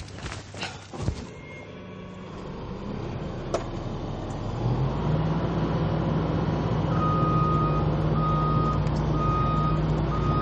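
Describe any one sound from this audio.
A diesel excavator engine rumbles and revs up louder.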